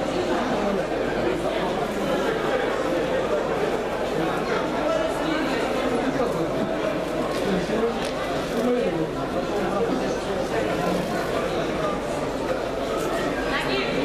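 A crowd of many people chatters in a large echoing hall.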